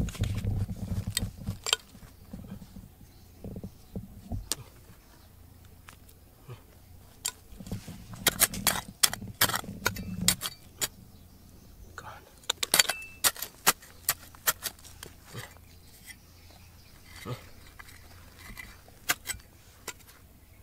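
A metal pick scrapes and clinks against stony soil.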